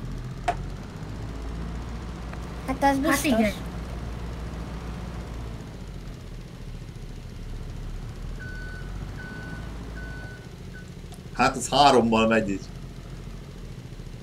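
A forklift engine idles with a low, steady hum.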